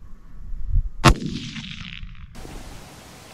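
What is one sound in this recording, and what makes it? A rifle fires a single sharp shot that echoes outdoors.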